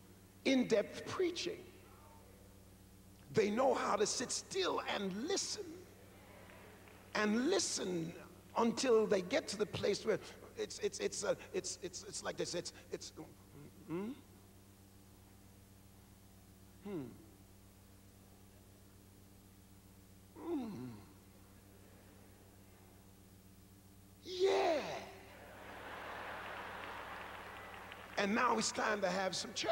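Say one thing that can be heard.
A man preaches with animation into a microphone, with dramatic pauses.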